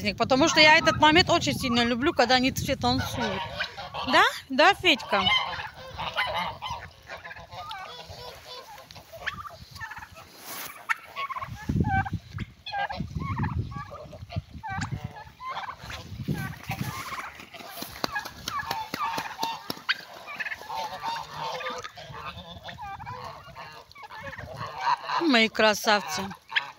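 A turkey gobbles loudly nearby.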